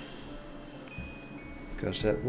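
A small alarm clock chimes briefly.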